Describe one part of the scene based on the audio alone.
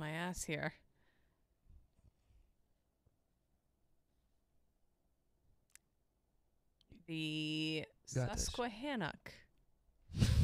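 A woman talks into a close microphone, with animation.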